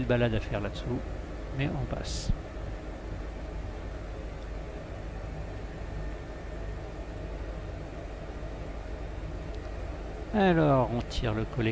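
A helicopter engine and rotor drone steadily from inside the cabin.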